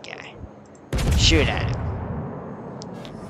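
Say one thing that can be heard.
Naval guns fire with a loud, rumbling boom.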